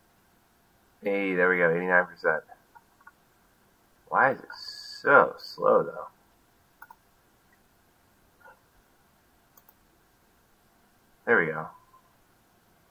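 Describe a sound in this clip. A man speaks casually into a microphone, in short bursts.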